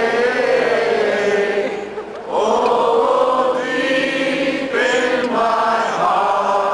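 A woman sings loudly through loudspeakers.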